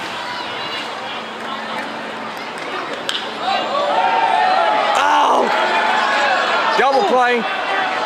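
A crowd murmurs steadily in a large open stadium.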